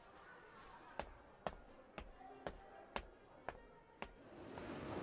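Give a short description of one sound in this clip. Footsteps tap across a hard floor, walking away.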